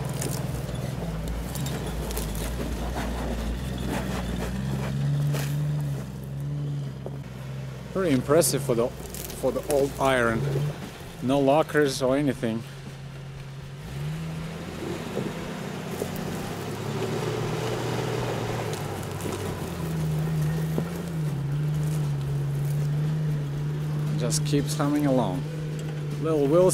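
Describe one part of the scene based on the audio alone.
An off-road vehicle's engine rumbles and revs.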